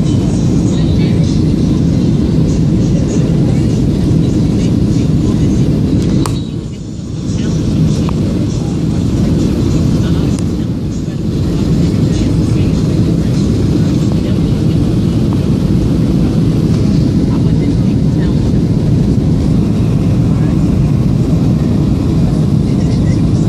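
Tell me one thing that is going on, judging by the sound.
A steady, loud low roar of jet engines and rushing air fills an airliner cabin.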